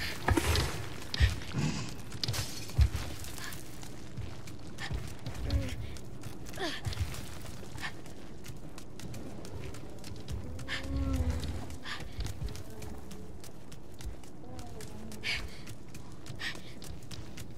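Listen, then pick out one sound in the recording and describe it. Footsteps patter on a stone floor as a boy runs.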